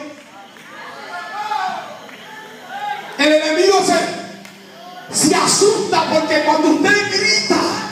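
A large crowd of men and women prays aloud and calls out together in a large echoing hall.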